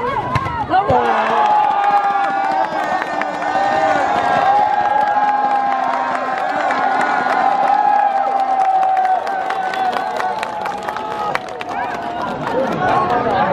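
A large outdoor crowd of men and women chatters and cheers loudly.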